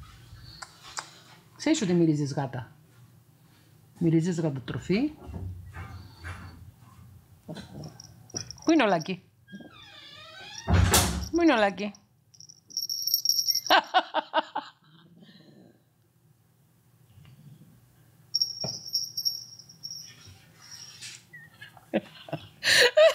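A woman talks affectionately and playfully close to a microphone.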